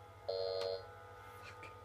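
An electronic error buzzer sounds briefly.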